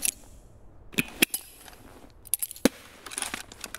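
A weapon clicks as it is drawn.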